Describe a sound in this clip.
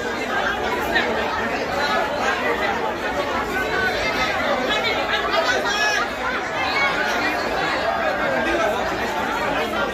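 A large crowd of men shouts and talks over one another close by.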